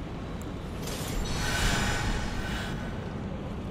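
A magic spell swells with a bright rushing whoosh.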